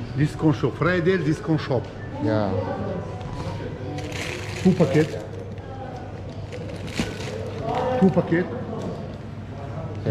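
A man speaks calmly and close by, explaining.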